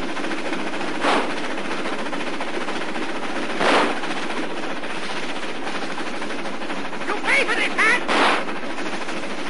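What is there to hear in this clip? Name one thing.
Gunshots crack sharply several times.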